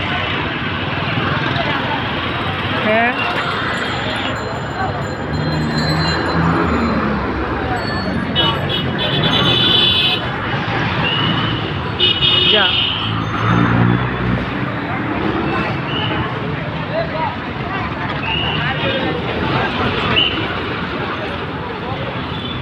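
Busy street traffic rumbles steadily all around, outdoors.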